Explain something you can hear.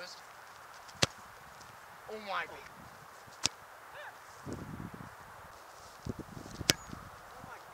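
A soccer ball is kicked with sharp thuds.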